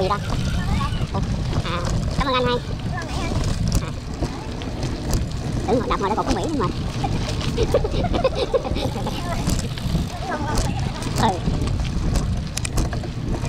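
Bicycle tyres roll and rattle over a bumpy dirt path.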